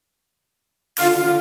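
An electronic keyboard plays loud notes.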